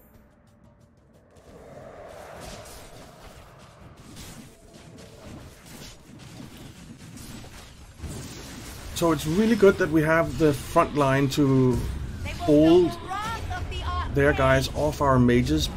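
Magical battle effects crackle and clash.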